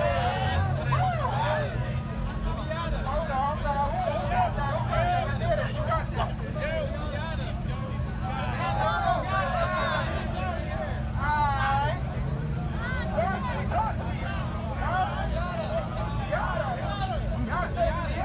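A large crowd of young people chatters and shouts outdoors.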